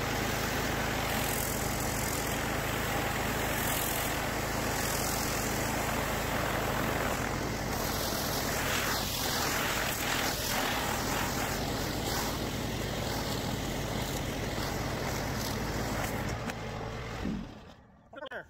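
A pressure washer engine runs loudly and steadily.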